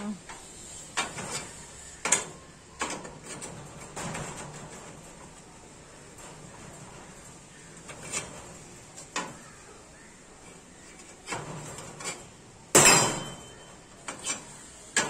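Metal pipes clank and knock against a steel frame.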